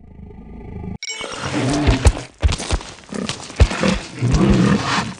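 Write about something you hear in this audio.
A large creature growls and roars loudly.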